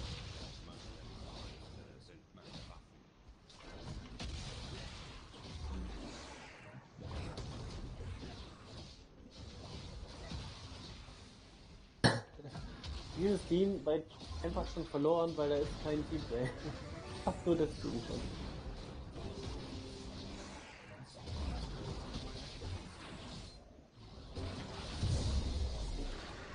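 Fantasy combat sounds whoosh and crackle as magic spells strike.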